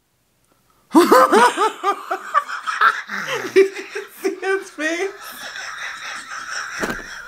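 A woman bursts into loud laughter close by.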